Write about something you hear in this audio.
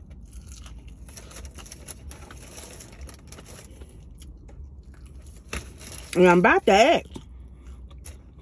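A woman bites into crunchy fried food.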